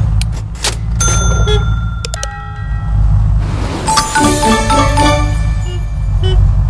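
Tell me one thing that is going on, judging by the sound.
A video game plays bright electronic chimes and jingles.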